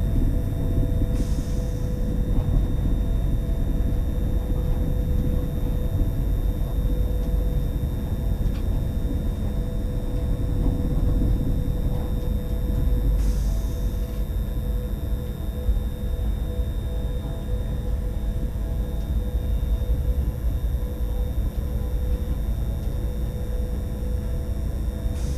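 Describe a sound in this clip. A train rumbles steadily along the rails from inside the cab.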